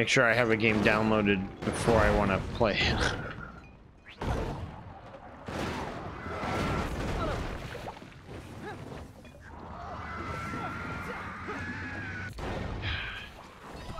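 Gunfire and explosions boom from a video game.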